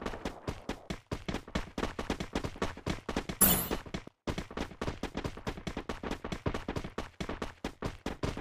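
A game character's footsteps patter quickly on the ground.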